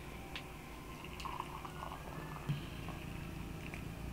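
Tea pours from a kettle into a glass with a gurgling trickle.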